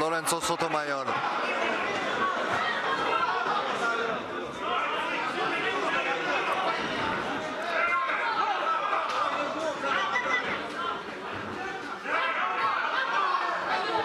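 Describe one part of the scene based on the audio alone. A crowd murmurs and cheers in a large hall.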